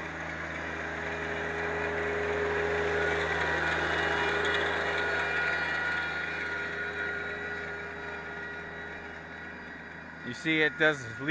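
A rake drags and scrapes over dirt and leaves.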